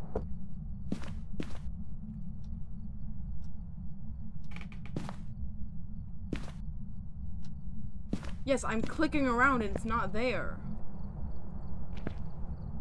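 Footsteps thud softly on a carpeted floor.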